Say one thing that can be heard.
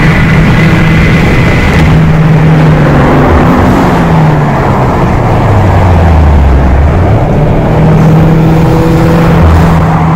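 Tyres roar on a highway at speed.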